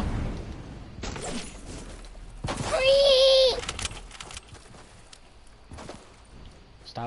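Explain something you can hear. Wooden walls and ramps snap into place with quick clicks.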